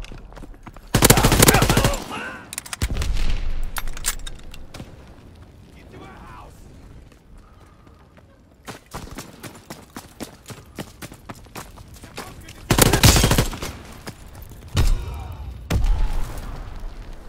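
A machine gun fires loud, rapid bursts.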